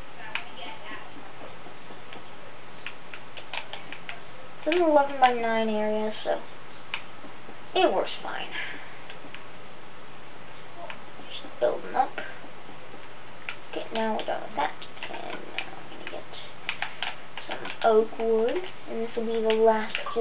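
A game plays quick clicking and crunching sounds as blocks are dug away, heard through a television speaker.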